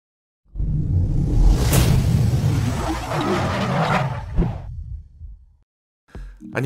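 A deep whooshing effect swells and fades.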